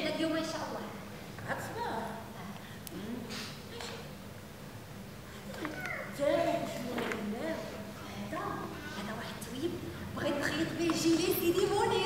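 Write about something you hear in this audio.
A young woman speaks loudly and with animation in a large echoing hall.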